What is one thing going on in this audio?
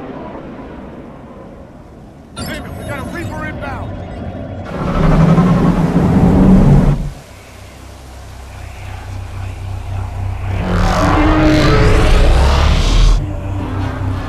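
An aircraft engine hums and roars overhead.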